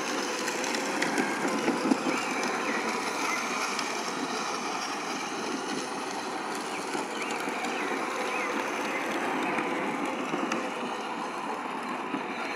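Plastic wheels of small toy ride-on vehicles rumble and crunch over concrete.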